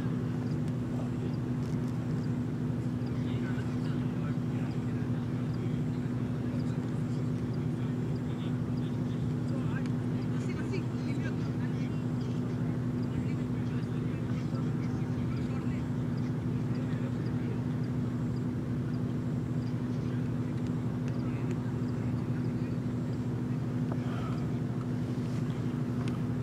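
Young men talk at a distance outdoors.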